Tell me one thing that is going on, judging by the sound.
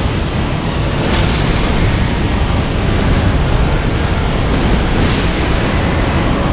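A magic blast bursts with a sharp whoosh.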